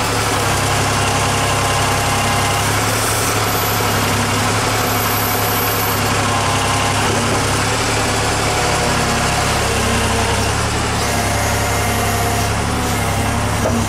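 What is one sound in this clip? A diesel engine rumbles steadily and loudly close by.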